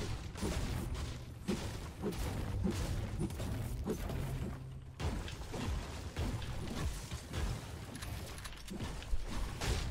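Footsteps thud on wooden floors.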